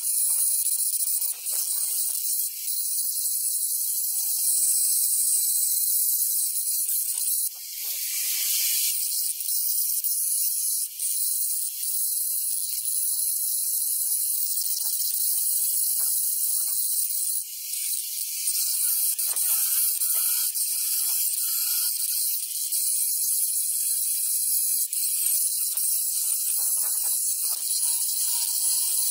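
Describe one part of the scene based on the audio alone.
An angle grinder whines at high speed as it grinds metal.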